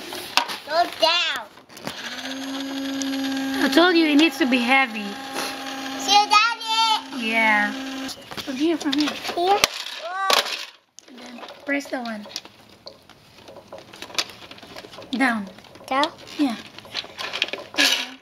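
A plastic toy truck clatters as it is handled.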